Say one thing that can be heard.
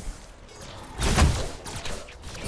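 A loud impact bursts out.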